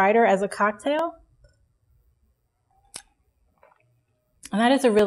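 A young woman speaks calmly and close to a microphone, pausing between phrases.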